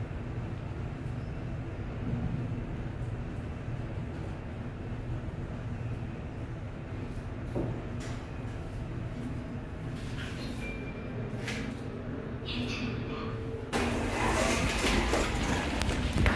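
An elevator car hums with a low, steady rumble as it travels.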